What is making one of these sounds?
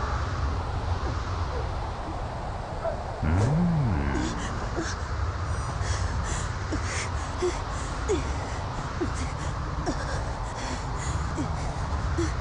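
Footsteps tread steadily over the ground.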